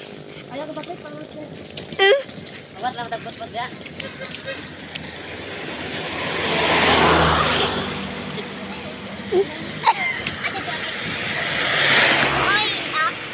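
Footsteps crunch on a gravel roadside.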